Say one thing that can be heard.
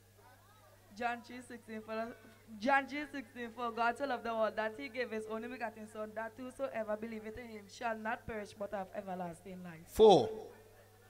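A boy sings into a microphone, heard through loudspeakers.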